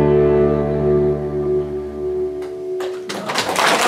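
A fiddle plays a closing note.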